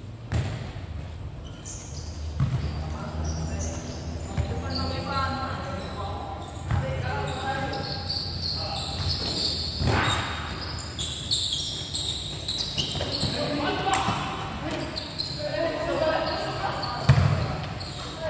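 A ball thuds as it is kicked on a hard court, echoing under a large roof.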